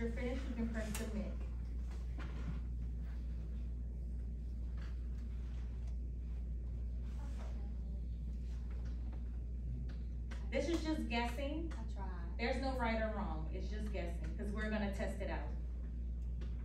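A woman speaks calmly in a room, a little way off.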